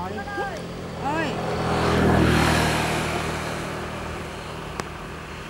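Water splashes and sloshes nearby.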